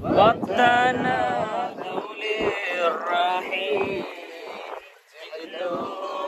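Several men talk loudly close by in a crowd.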